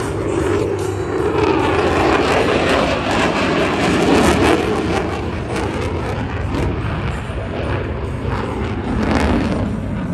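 A jet engine roars loudly overhead and slowly fades into the distance.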